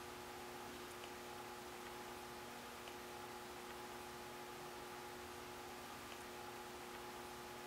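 A fork scrapes softly against the side of a pot while stirring thick melted cheese.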